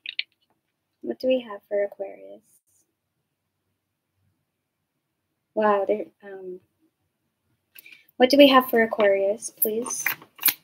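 A young woman speaks calmly and softly into a nearby microphone, with pauses.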